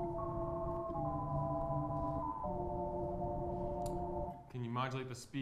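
A synthesizer plays sustained chords that change every second or so, then stops.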